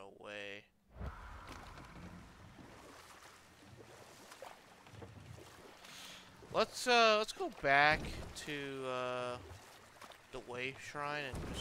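Water splashes softly as a boat is paddled along.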